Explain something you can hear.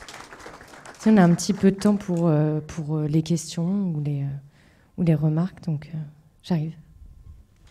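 A woman speaks into a microphone over loudspeakers, calmly.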